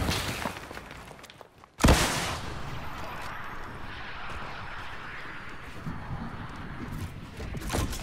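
Footsteps patter quickly on grass and wood.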